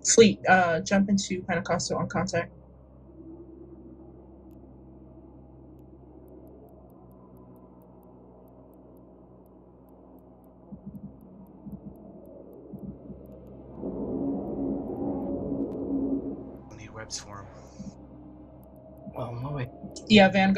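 A spacecraft engine hums low and steady.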